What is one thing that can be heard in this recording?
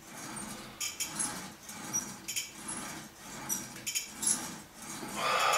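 A cable machine whirs and clanks as a weight stack rises and falls in a steady rhythm.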